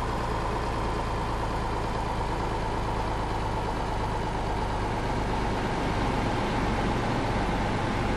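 Tyres roll on the road with a steady rush.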